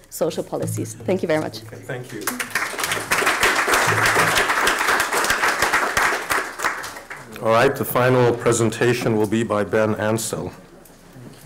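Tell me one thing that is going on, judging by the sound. A woman speaks warmly through a microphone in a large room.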